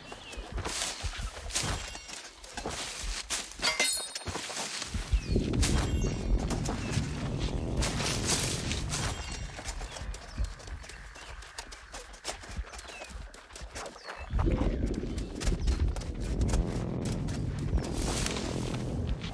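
Leaves rustle as berries are picked from a bush.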